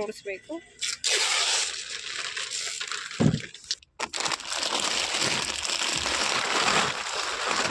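Plastic snack packets rustle and crinkle.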